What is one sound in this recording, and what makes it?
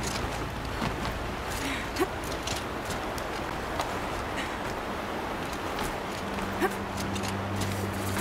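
Hands scrape and grip on rock while climbing.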